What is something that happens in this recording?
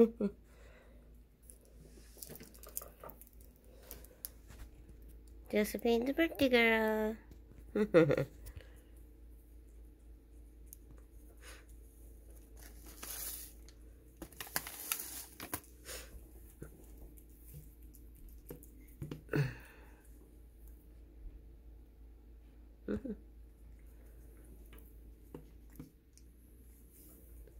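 A cat chews and laps food softly, close by.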